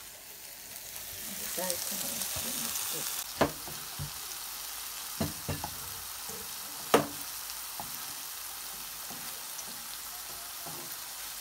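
Food sizzles loudly in a frying pan.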